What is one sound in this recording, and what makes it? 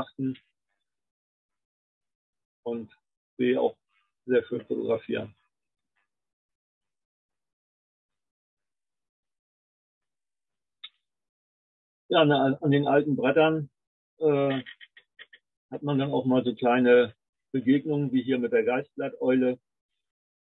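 An older man speaks calmly through an online call, with pauses.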